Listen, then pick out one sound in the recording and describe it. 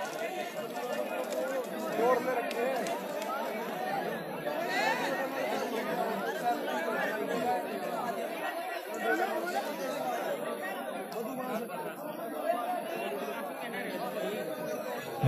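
A large crowd of men chatters loudly outdoors.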